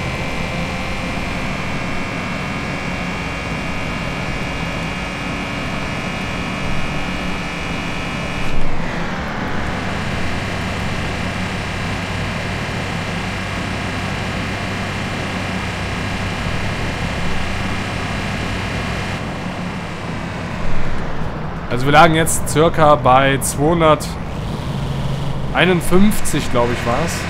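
A car engine hums steadily, its pitch dropping briefly as it shifts gear.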